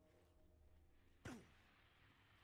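A heavy thud sounds as a man lands from a drop.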